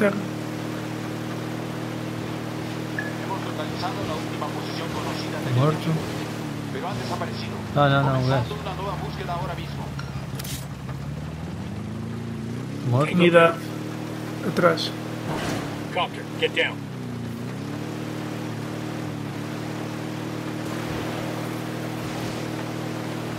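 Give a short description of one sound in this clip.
Water splashes and churns behind a moving boat.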